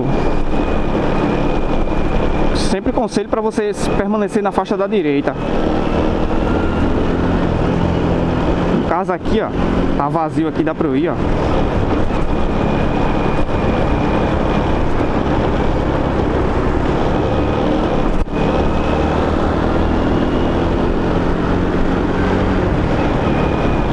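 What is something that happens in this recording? Wind rushes loudly past the microphone.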